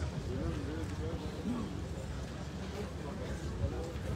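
An elderly man speaks into a microphone over a loudspeaker.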